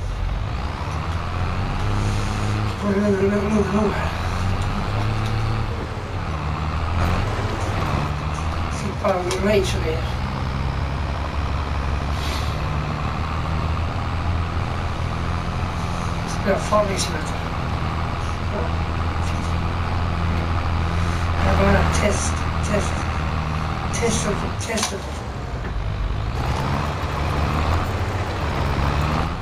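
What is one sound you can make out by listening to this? A tractor engine rumbles steadily as the tractor drives along.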